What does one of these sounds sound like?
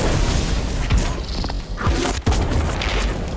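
A loud blast booms and crackles.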